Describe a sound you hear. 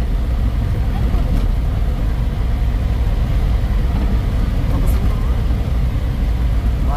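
A car drives steadily through a tunnel, its engine and tyres rumbling low.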